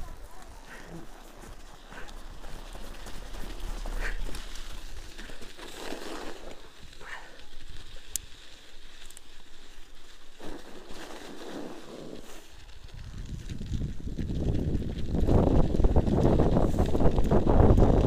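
Bicycle tyres crunch over packed snow.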